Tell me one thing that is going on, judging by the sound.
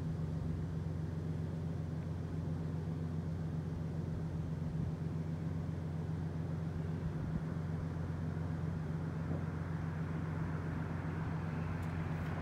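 Traffic hums steadily in the distance outdoors.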